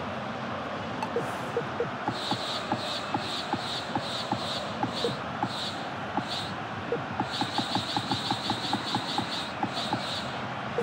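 Short menu ticks click rapidly as options change.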